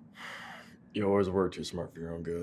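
A man speaks softly nearby.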